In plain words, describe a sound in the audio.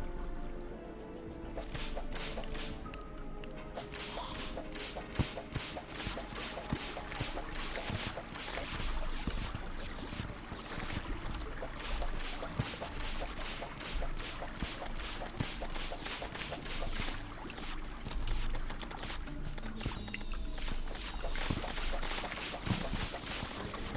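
Quick bursts of game attack sounds crackle and pop again and again.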